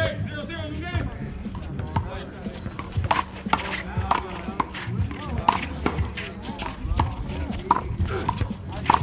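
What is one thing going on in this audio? A ball smacks sharply against a wall and the ground.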